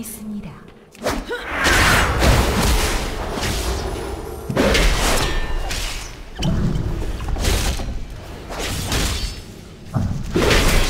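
Magic blasts and weapon blows crash loudly in a fierce fight.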